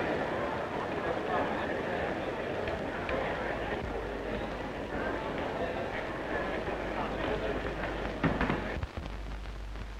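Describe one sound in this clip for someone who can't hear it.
A large crowd chatters and murmurs in an echoing hall.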